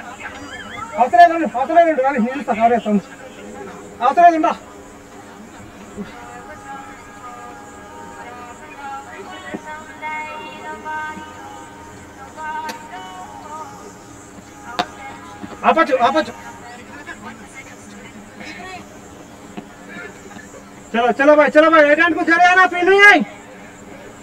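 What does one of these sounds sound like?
Men shout out on an open field at a distance.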